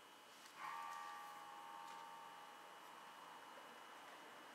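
An electric guitar note is plucked and rings out, slowly fading.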